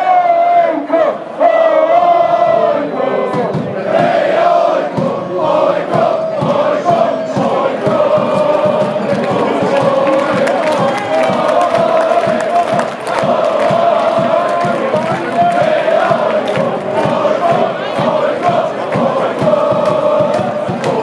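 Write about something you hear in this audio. A large stadium crowd sings and chants loudly in unison.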